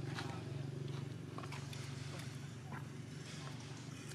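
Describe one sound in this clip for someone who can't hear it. A monkey's feet patter over dry leaves and gravel.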